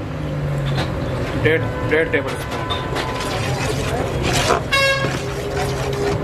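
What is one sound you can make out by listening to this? A metal ladle clinks and scrapes against a metal pot.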